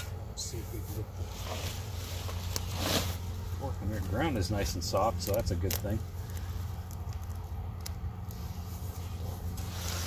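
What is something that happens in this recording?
A garden fork crunches into soil.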